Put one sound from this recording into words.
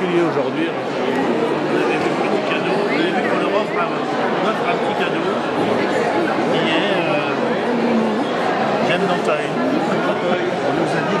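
Many adults chatter at once in a busy, echoing room.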